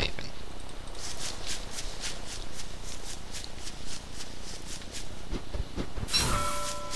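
Footsteps crunch steadily across dry grass.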